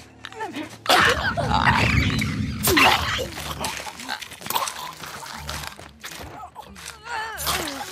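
Heavy blows and scuffling ring out in a close struggle.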